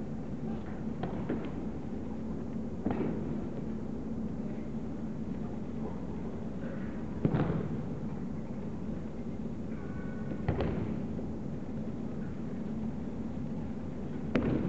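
Bodies thump onto a padded mat.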